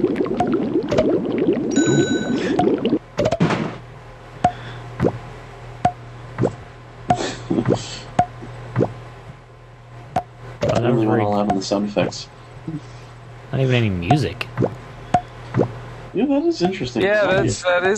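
Game bubbles pop with short bright blips.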